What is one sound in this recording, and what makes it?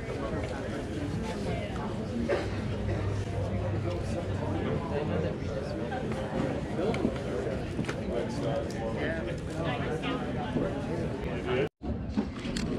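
Men and women chatter in the background of a busy indoor hall.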